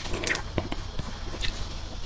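A knife cuts through a soft cake.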